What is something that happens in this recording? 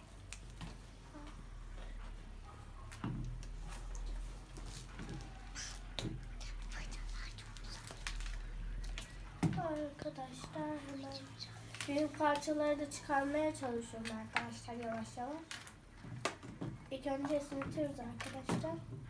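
Cardboard taps and rustles against a table.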